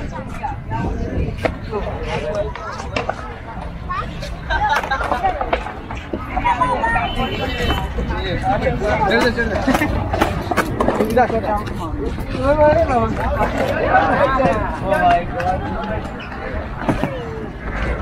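Skateboard wheels roll and rumble on rough concrete.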